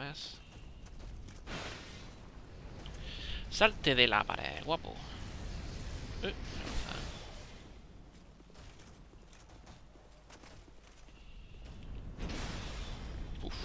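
Sword blows clang and thud against a giant foe.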